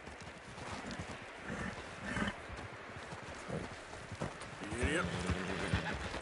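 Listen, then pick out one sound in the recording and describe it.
Branches brush and rustle against a horse and rider.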